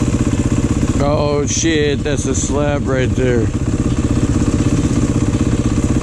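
A motorcycle engine idles close by with a steady, rapid throb.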